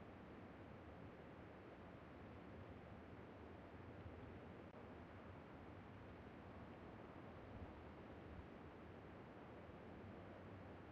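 A car engine rumbles steadily as a car drives over rough ground.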